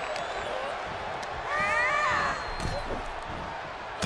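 Punches thud against a wrestler.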